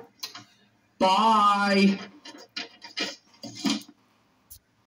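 A young man speaks with animation through a small loudspeaker.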